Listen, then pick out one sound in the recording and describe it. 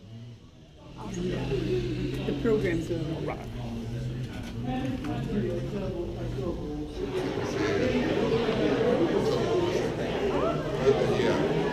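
A crowd of people chatters in a large echoing room.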